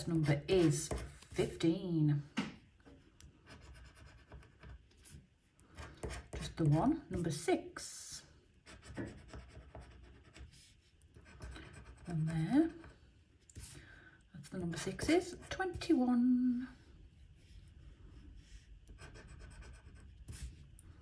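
A metal tool scratches across a card with a soft, gritty scraping.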